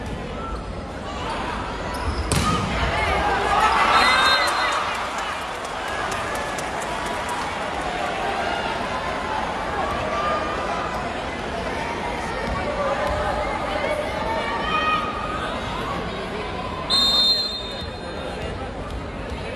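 A crowd cheers and chatters throughout a large echoing hall.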